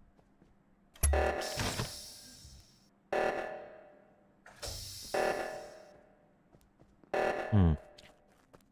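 An alarm blares in repeated loud bursts.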